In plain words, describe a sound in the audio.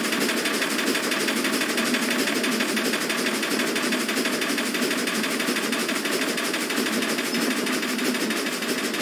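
A steam train rolls steadily along the rails with a loud, rapid rhythmic clatter.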